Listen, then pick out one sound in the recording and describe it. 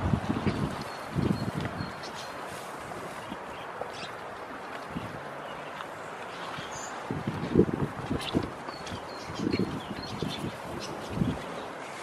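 Goats rustle and munch through dry hay up close.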